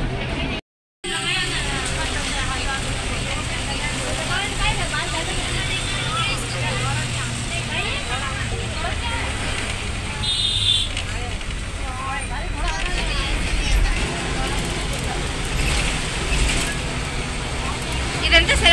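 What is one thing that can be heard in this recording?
A bus engine hums steadily while the bus drives along.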